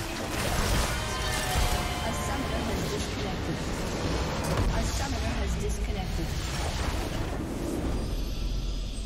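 Game spell effects clash and crackle in a loud fight.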